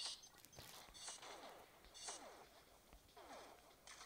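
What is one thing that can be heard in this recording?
Gunfire and an explosion sound in a video game.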